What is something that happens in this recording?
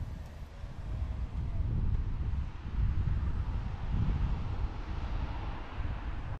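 A van drives by on a street with a low rumble.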